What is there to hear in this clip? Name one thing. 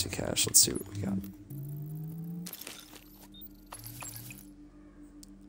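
Short electronic menu tones chime.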